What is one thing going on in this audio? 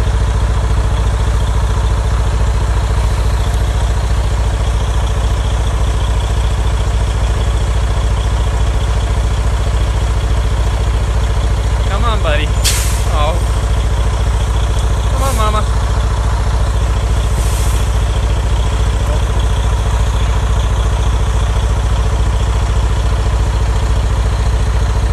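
A vehicle engine idles with a steady low rumble.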